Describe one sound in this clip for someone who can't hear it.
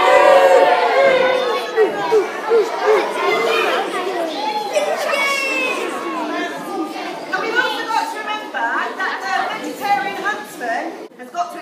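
A woman speaks with animation to an audience.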